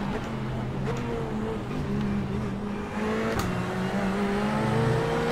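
A racing car engine drones steadily, its pitch shifting slightly as it changes gear.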